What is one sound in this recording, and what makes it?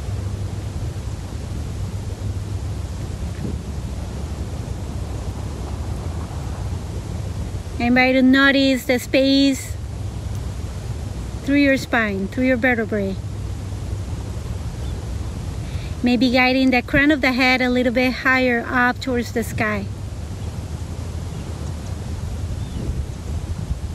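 Wind blows steadily across a microphone outdoors.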